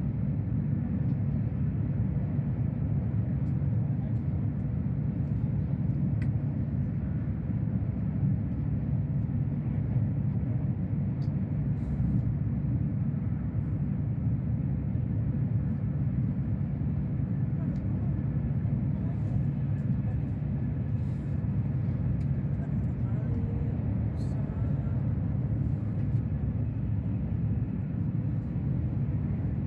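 A train hums and rumbles steadily at speed, heard from inside a carriage.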